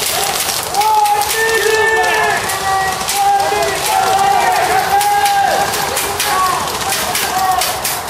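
Men shout in the distance.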